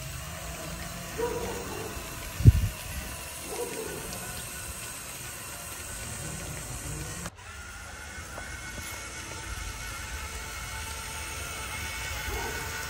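A small motor whirs as a toy vehicle drives over concrete.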